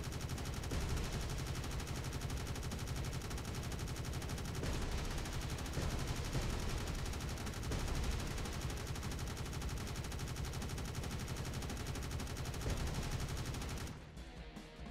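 Laser shots zap repeatedly in a video game.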